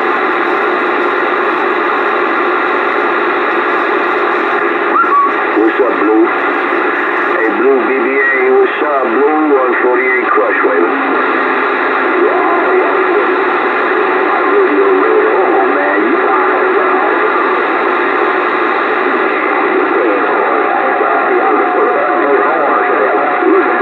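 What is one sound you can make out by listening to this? A radio loudspeaker hisses with steady, crackling static.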